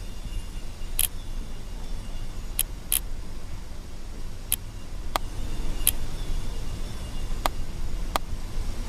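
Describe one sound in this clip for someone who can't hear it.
Puzzle tiles click as they turn.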